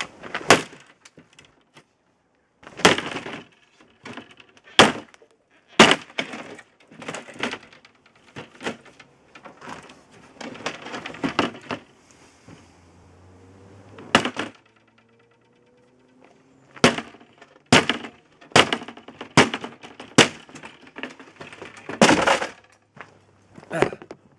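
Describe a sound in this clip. A hatchet strikes a wooden panel with sharp knocks.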